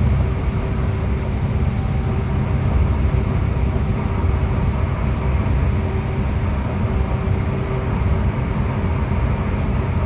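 Tyres roar on the road, echoing in a tunnel.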